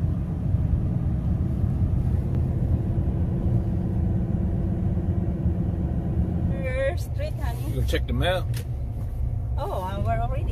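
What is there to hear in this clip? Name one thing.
A car engine hums steadily with road rumble inside the cabin.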